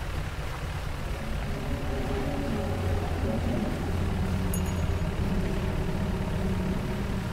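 A small boat's engine chugs steadily.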